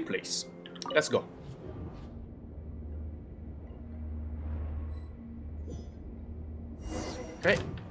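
A magical portal whooshes and hums with a deep, steady drone.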